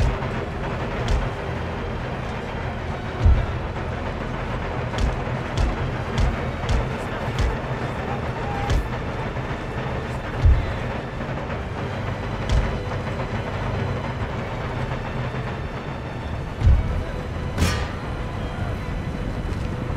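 Muskets crack in scattered volleys.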